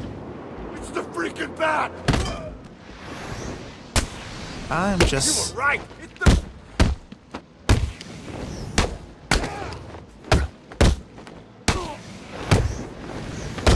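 Men grunt and cry out as they are struck.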